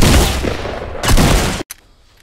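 A gun fires loudly in quick bursts.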